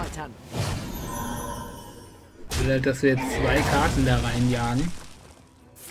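Creatures in a video game clash with bursts and thuds.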